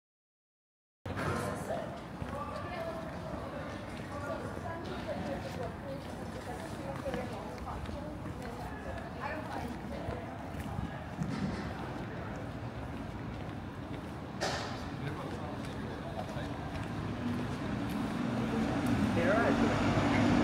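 Footsteps and street bustle echo outdoors.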